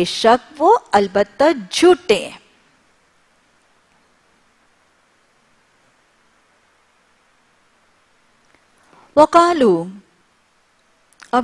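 A woman speaks calmly into a microphone, in short phrases with long pauses.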